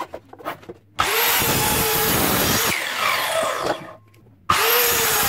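An electric saw whines loudly as it cuts through wood.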